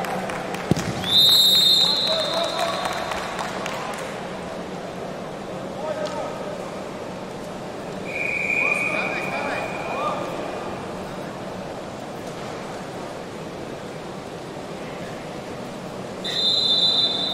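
A referee blows a sharp whistle several times in a large echoing hall.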